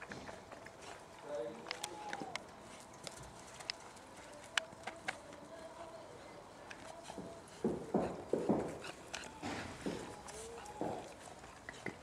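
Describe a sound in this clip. A woman talks softly to puppies.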